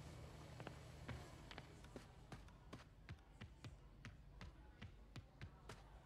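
Footsteps run quickly across a hard floor and up stairs.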